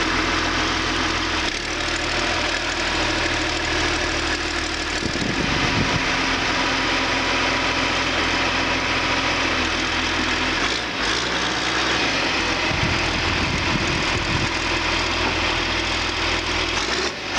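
A diesel engine idles with a steady low rumble close by.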